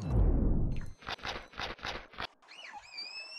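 A shark's jaws crunch in several quick bites.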